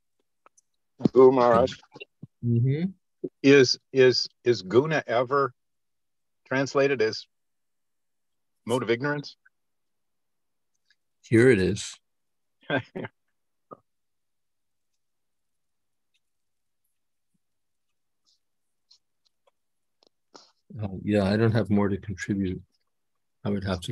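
An elderly man speaks calmly over an online call, with long pauses.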